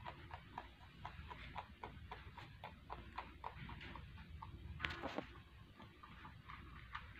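A rabbit crunches dry food with quick, steady bites close by.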